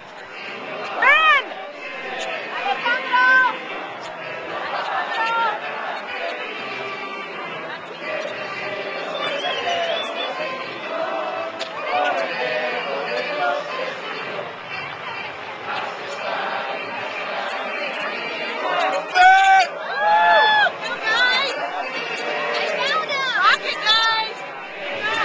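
Men and women in the crowd shout and cheer now and then.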